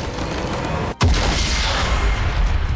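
A large crystal shatters and explodes with a deep boom.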